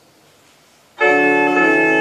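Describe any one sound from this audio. A pipe organ suddenly sounds a loud, sustained chord in a large echoing hall.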